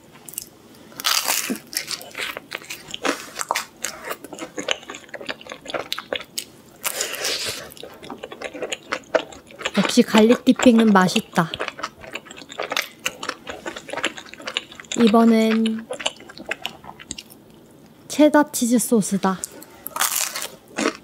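Crispy batter crackles as a young woman bites into fried chicken.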